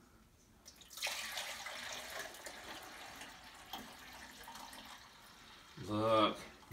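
Liquid pours and splashes into a jug.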